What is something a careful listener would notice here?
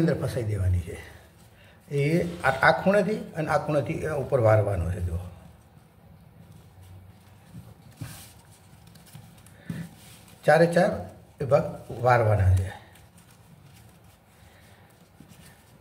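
Paper rustles and crinkles softly as it is folded by hand.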